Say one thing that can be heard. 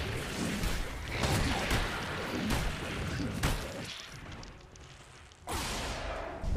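Weapons clash and strike in quick blows.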